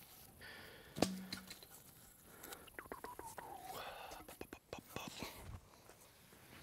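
A hatchet strikes and shaves a wooden stake in short sharp strokes.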